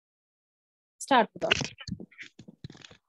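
A woman speaks over an online call.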